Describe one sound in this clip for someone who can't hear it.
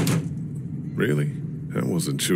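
A young man answers briefly.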